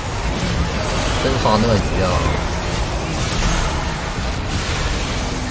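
Game spells whoosh and crackle in quick bursts.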